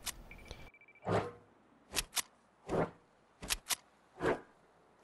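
Gunshots ring out one after another at a steady pace.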